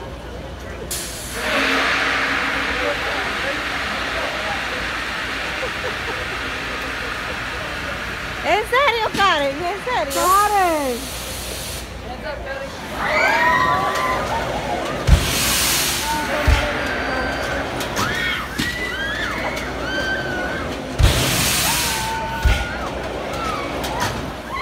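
Air hisses steadily from a ride's machinery.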